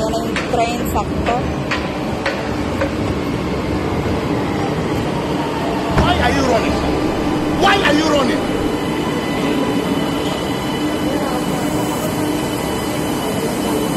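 A stopped train hums steadily nearby, in a large echoing hall.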